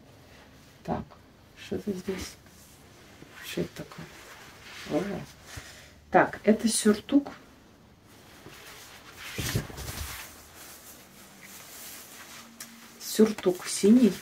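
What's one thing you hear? Fabric of a jacket rustles as it is handled.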